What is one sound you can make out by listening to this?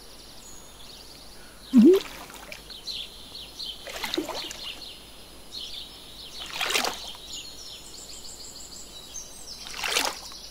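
A stream of water flows steadily.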